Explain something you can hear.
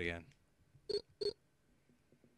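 Two short electronic menu beeps sound.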